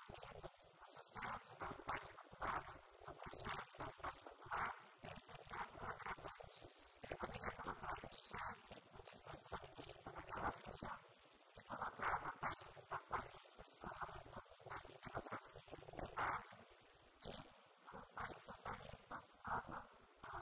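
A young woman speaks calmly into a microphone, heard through a loudspeaker in an echoing room.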